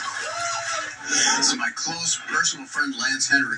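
A man speaks with animation into a microphone, heard through a television speaker.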